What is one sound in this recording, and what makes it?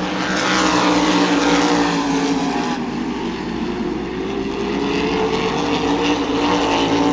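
Race car engines roar loudly as cars speed past.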